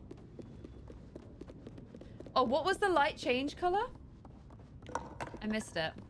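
Footsteps patter on wooden floorboards.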